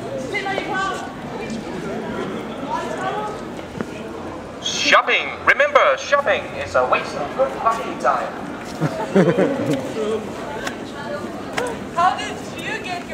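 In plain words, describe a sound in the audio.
Several people talk and murmur nearby outdoors.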